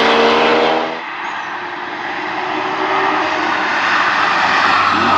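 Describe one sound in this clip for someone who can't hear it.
A second car engine hums as it approaches from a distance.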